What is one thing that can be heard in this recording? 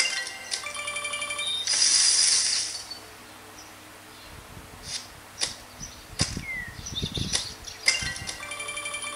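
A mobile game plays bright tinkling chimes through a small speaker.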